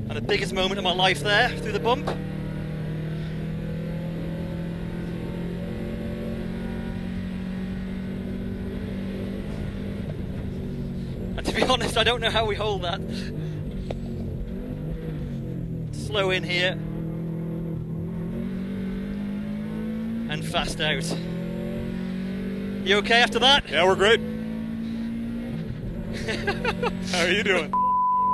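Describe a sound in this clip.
A car engine hums and revs up and down close by.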